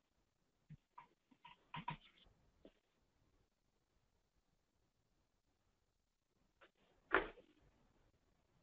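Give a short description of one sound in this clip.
A young woman speaks calmly into a microphone, close up.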